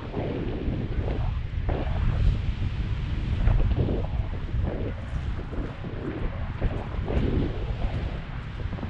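Wind buffets a microphone in flight.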